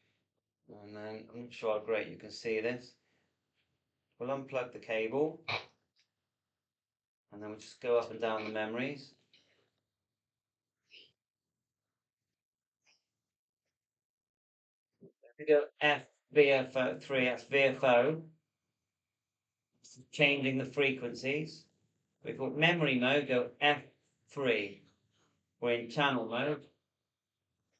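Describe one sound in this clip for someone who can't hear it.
A man talks calmly and explains, close to a microphone, in short bursts with pauses.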